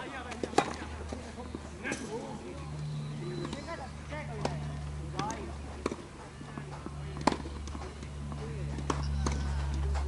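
Tennis balls are struck with rackets, giving sharp pops.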